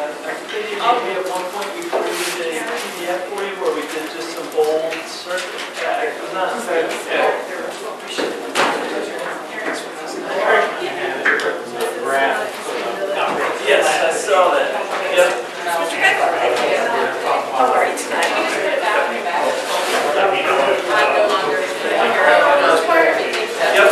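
Several men and women talk at once in a room with some echo.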